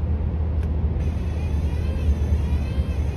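A windscreen wiper swishes and squeaks across wet glass.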